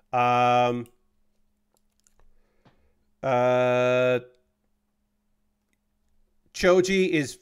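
Small plastic parts click together in hands.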